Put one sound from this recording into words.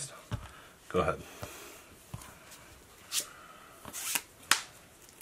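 Cards shuffle and riffle in hands.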